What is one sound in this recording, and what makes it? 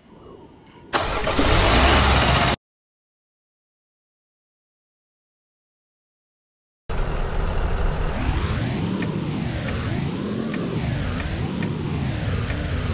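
A car engine starts and runs with a loud, wavering roar.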